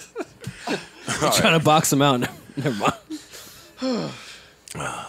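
Men laugh loudly.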